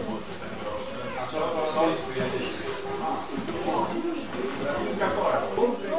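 An elderly man speaks calmly to a group nearby.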